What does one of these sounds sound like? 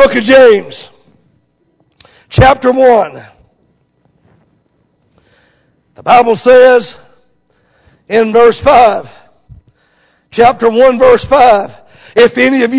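A middle-aged man speaks slowly and deliberately through a microphone, with pauses between phrases.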